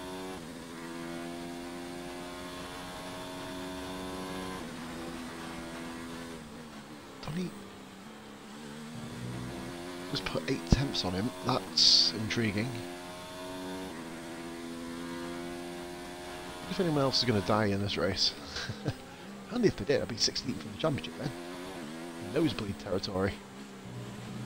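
A racing car engine whines at high revs and shifts through the gears.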